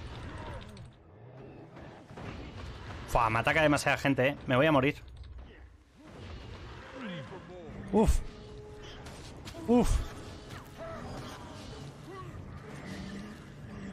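Fighting sounds and magic effects burst from a video game.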